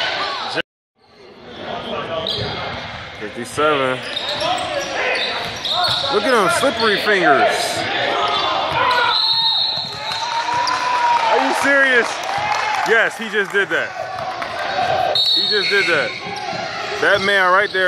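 Sneakers squeak sharply on a hard gym floor.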